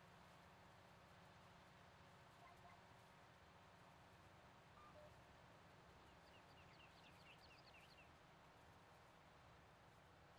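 A hay tedder whirs behind a tractor.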